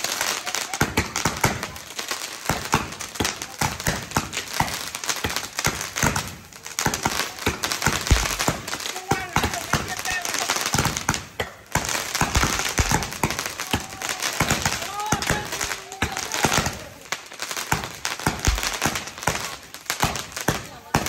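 Fireworks crackle and bang loudly in rapid bursts.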